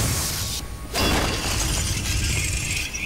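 Stones crash and scatter on the ground.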